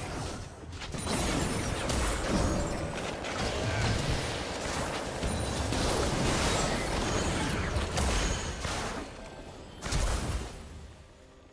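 Spells and weapon hits from a video game crash and whoosh in a fast battle.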